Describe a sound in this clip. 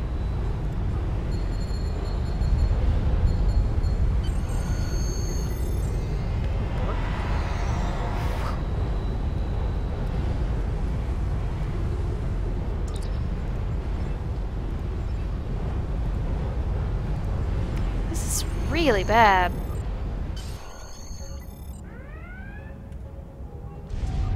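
A young woman talks calmly into a microphone.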